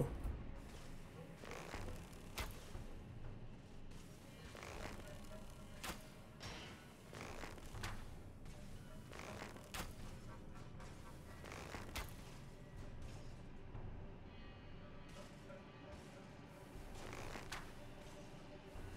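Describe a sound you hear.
Metal armour clanks as a knight moves and gestures.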